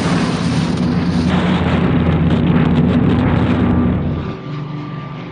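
Wind roars loudly past.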